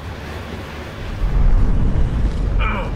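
A heavy explosion booms and rumbles deeply.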